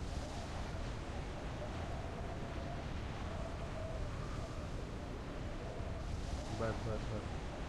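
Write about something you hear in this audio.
Wind rushes steadily past a skydiver in free fall.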